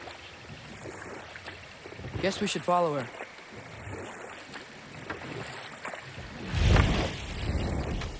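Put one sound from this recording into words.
A wooden boat glides through water.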